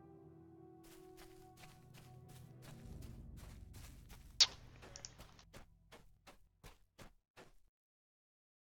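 Footsteps thud rhythmically on soft ground.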